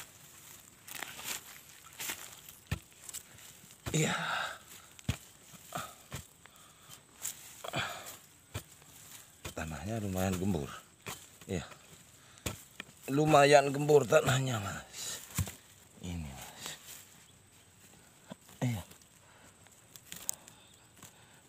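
A blade chops into dry soil with dull thuds.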